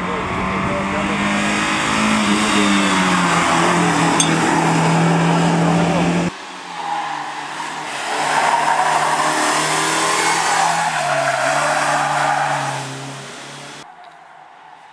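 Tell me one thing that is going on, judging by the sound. A rally car engine revs hard and roars past up close.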